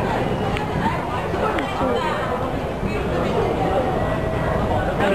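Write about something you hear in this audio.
A crowd murmurs and chatters all around, echoing in a busy hall.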